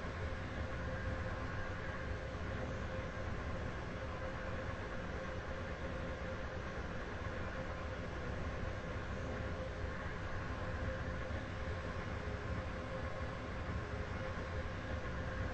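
A train rumbles steadily along the tracks with a low hum.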